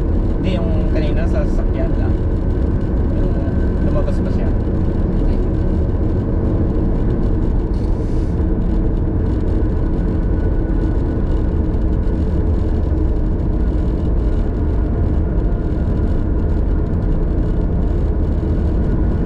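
Tyres roll on the road with a low, steady rumble.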